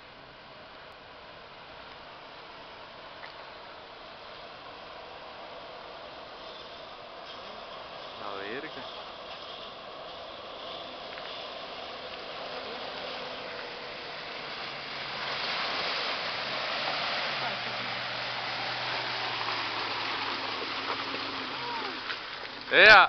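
Water splashes and surges as a sport utility vehicle drives through a shallow creek.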